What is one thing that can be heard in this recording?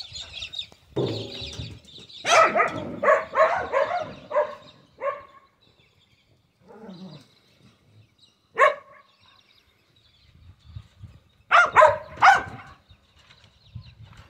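A dog's paws thump and scrape on a hollow drum.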